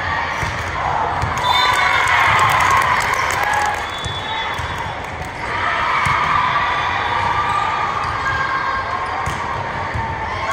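A crowd of players and spectators chatters and cheers in a large echoing hall.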